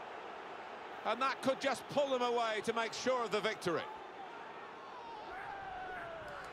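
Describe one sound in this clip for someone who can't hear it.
A stadium crowd cheers loudly.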